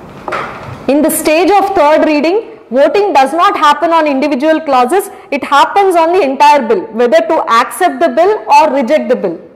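A young woman lectures with animation, close to a microphone.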